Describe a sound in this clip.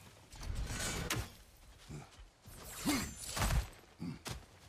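An axe strikes with a heavy thud.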